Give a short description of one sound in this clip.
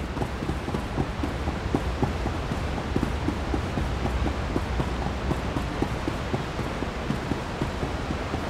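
Water gushes steadily from large pipes.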